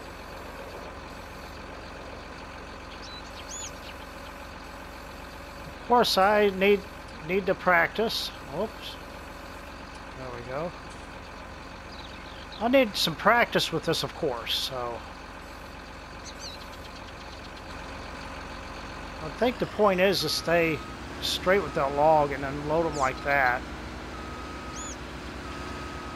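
A heavy machine's engine hums steadily.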